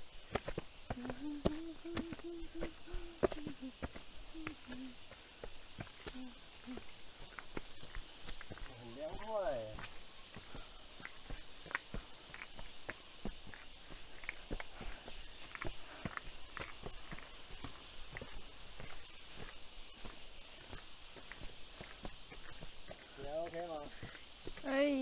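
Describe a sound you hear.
A man talks close by in a casual voice.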